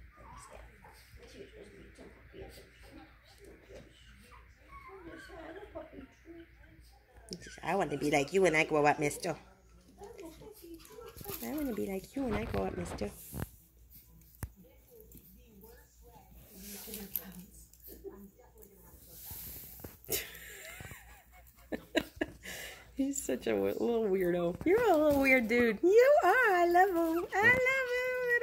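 Puppies scuffle and patter about on a soft floor.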